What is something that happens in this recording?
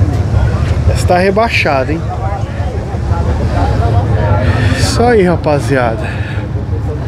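A man talks briefly close by.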